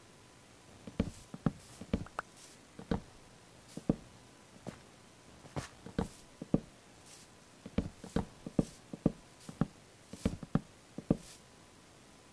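Wooden blocks knock into place in a video game.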